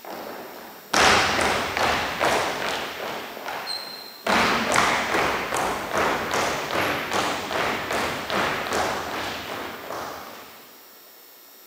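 Dancers' shoes tap and stamp on a wooden floor in a large echoing hall.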